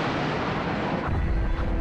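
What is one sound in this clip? A huge explosion booms.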